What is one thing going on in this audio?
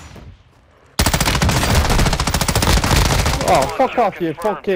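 A rifle fires in a rapid, loud burst.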